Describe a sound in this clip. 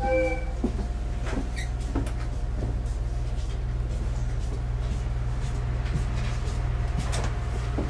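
Train wheels clatter on the rails as the train pulls away.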